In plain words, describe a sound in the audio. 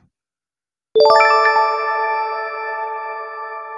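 A bright victory chime rings out and slowly fades.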